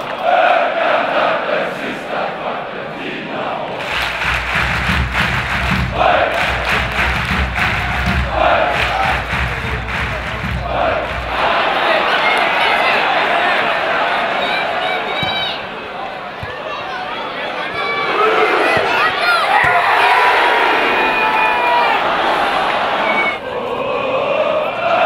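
A large stadium crowd sings and chants loudly outdoors.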